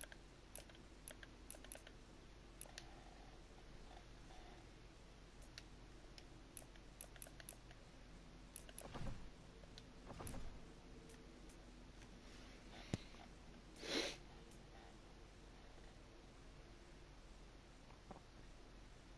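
Short menu clicks and ticks sound now and then.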